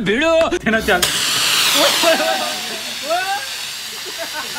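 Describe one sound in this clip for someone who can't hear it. A rocket whooshes as it launches.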